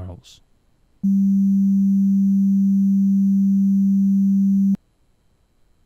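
A loud, steady electronic drone plays and then cuts off abruptly.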